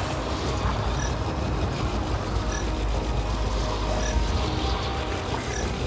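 An electronic scanner beeps at an even, steady pace.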